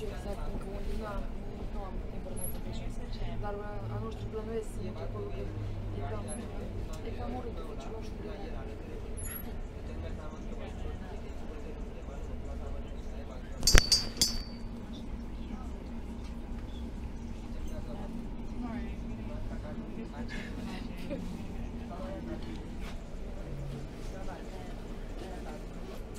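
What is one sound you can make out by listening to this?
A train rumbles and hums steadily as it rolls along the track.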